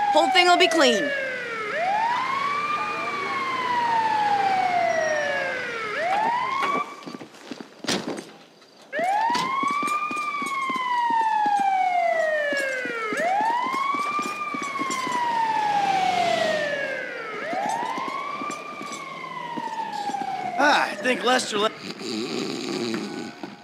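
An ambulance siren wails in a rising and falling pattern close by.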